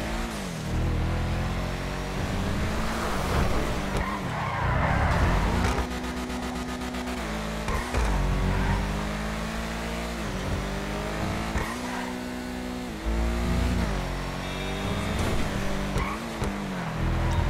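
A car engine revs high and shifts through gears as it races along.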